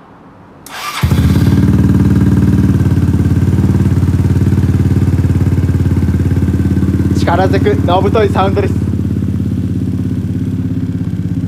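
A scooter engine starts and idles with a steady low rumble.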